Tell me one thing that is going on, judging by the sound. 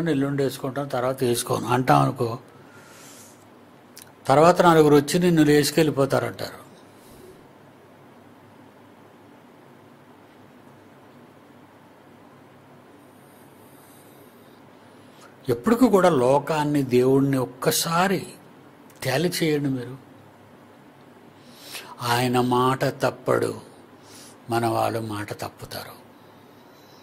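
An elderly man speaks calmly and with emphasis into a close microphone, pausing between phrases.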